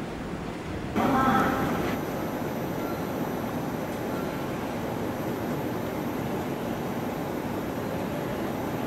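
An electric train rolls slowly into a station.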